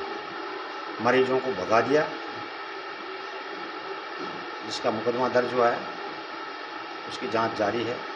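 A middle-aged man speaks calmly into microphones, in short bursts with pauses.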